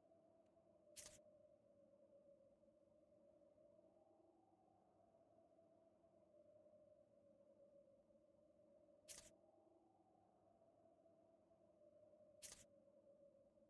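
A short menu click sounds as a page turns.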